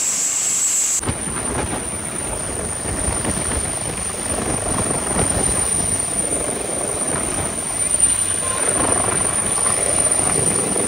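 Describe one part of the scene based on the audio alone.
Helicopter rotor blades whoosh and thump loudly as the helicopter lifts off.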